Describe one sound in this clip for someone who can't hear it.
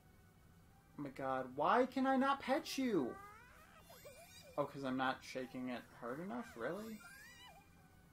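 A small cartoon creature chirps and coos in a high, cheerful voice.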